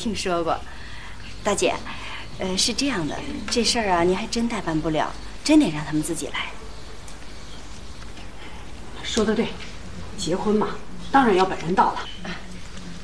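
A middle-aged woman talks with animation, close by.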